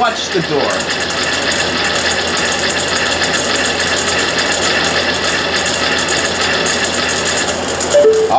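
A heavy stone slab grinds as it slides upward.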